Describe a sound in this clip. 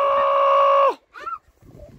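A man calls out in a long, loud held note close by.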